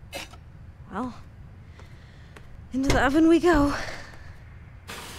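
A young woman speaks calmly and softly.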